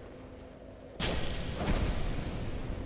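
A blade swings through the air with a sharp whoosh.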